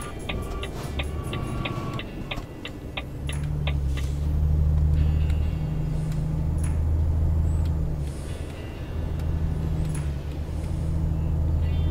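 A truck engine rumbles steadily with a low drone.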